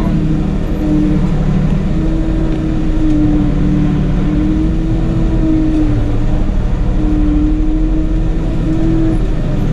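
A diesel tractor engine runs as the tractor drives along, heard from inside the cab.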